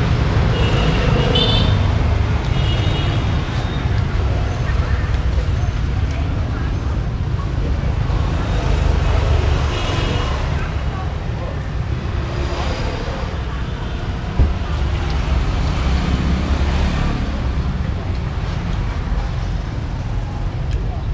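Traffic rumbles steadily outdoors.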